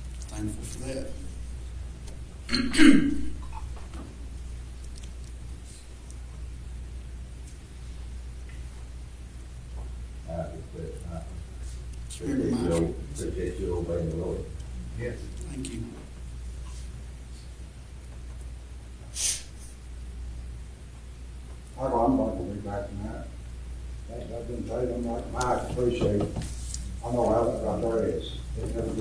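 A man speaks calmly, heard from across a room with a slight echo.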